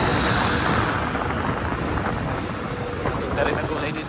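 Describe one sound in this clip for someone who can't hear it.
A van drives past close by.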